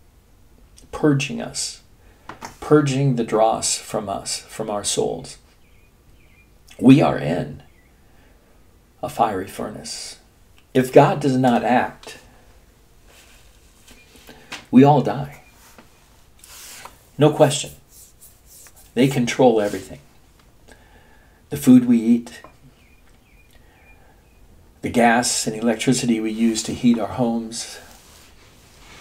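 An elderly man speaks calmly and close up, in short bursts with pauses.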